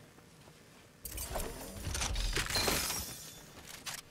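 A chest bursts open with a bright shimmering chime.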